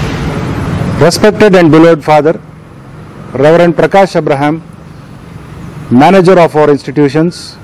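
A middle-aged man speaks calmly and slowly, close to a microphone.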